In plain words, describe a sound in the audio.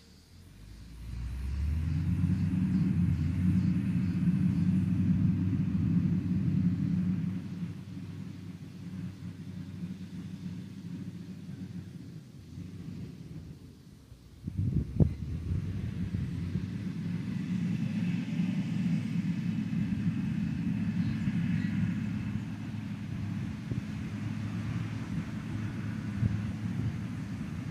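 A heavy diesel engine rumbles as a road grader works a dirt road.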